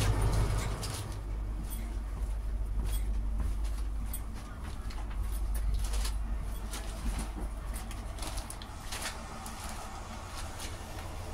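A quiet, steady hum fills a train carriage.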